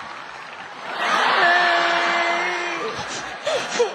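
A young woman wails loudly in a mock cry.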